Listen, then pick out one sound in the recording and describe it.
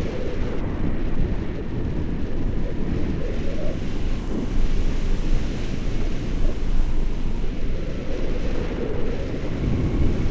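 Wind buffets a microphone with a deep rumble.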